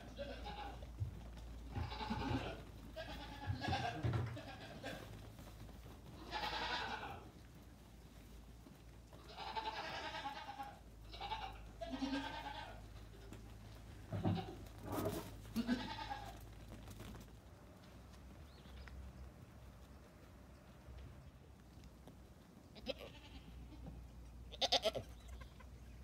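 Young goats bleat loudly and repeatedly.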